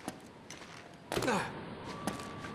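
A person drops down and lands with a heavy thud.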